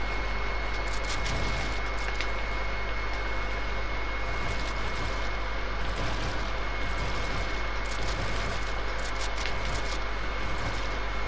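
Building pieces snap into place in quick clicks.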